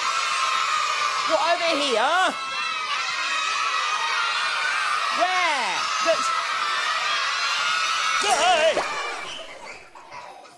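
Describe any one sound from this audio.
A crowd of young children cheers and shouts excitedly in a large hall.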